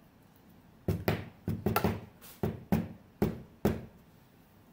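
Hard plastic cases click and knock against each other.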